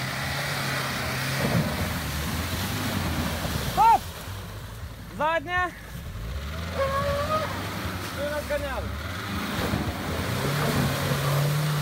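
Water splashes under an off-road car's wheels.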